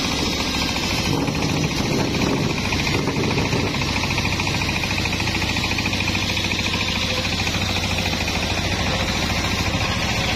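A circular saw grinds and rasps as it cuts through a log.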